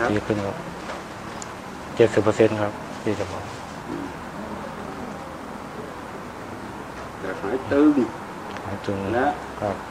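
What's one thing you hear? An elderly man speaks calmly nearby, in short phrases with pauses.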